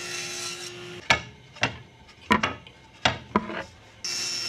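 Wooden strips knock onto a table.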